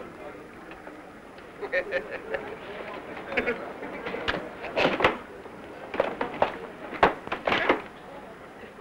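Men laugh heartily close by.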